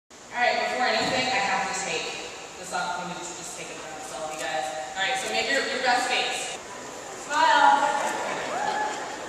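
A young woman sings through a microphone in a large echoing hall.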